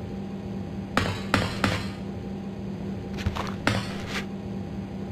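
Footsteps clank on a metal grating floor.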